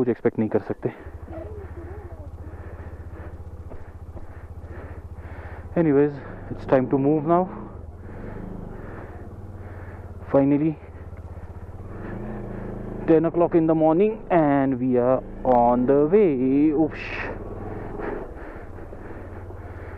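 A motorcycle engine hums steadily while riding slowly.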